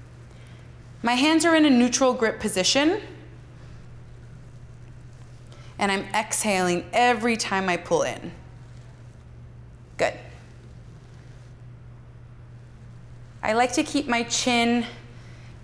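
A young woman speaks calmly and clearly, giving instructions.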